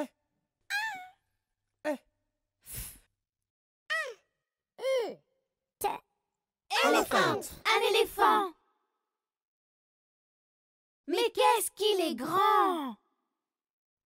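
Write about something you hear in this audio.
Cartoon voices speak one after another, cheerful and animated.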